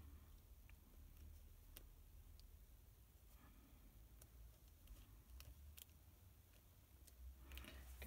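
Card paper rustles and slides under fingertips.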